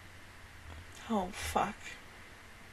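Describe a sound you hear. A young woman makes short, quiet vocal sounds close to a microphone.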